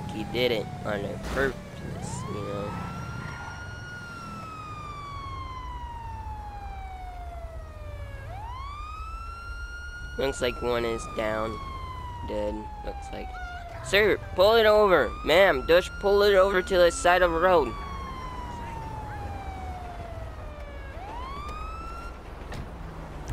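A police siren wails, rising and falling slowly.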